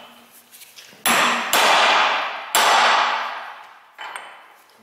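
A hammer strikes a metal chisel with loud ringing clangs.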